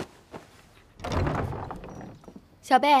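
Wooden doors creak and swing open.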